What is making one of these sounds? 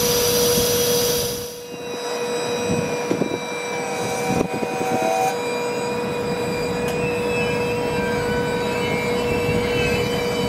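A passenger train rumbles slowly along the tracks.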